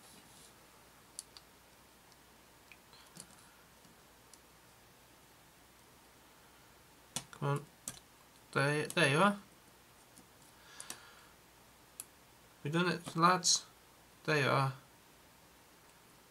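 Metal tweezers tick and click faintly against a small plastic part.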